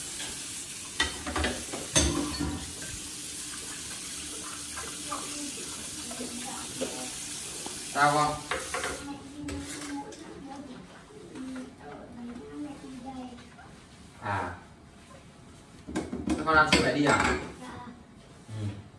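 Dishes clink and clatter in a sink.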